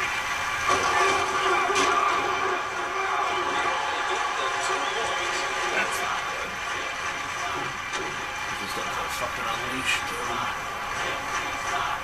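A stadium crowd cheers and roars steadily, heard through a television speaker.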